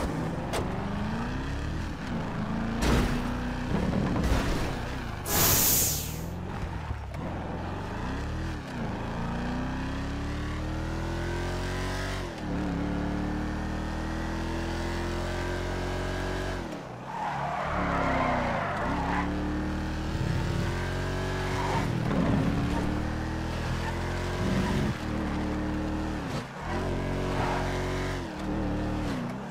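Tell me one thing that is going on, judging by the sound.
A car engine revs up and shifts through gears again and again.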